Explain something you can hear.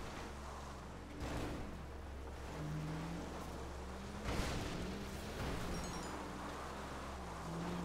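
Tyres rumble over rough dirt ground.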